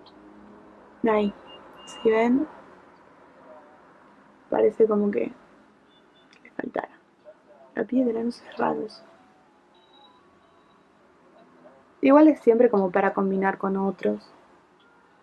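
A young woman speaks softly and close by, in short phrases with pauses.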